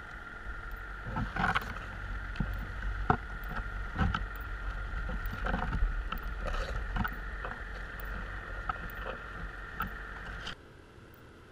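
A metal-framed trap knocks and scrapes against the seabed underwater.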